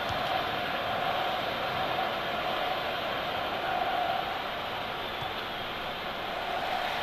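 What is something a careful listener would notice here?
A stadium crowd roars steadily in a large open arena.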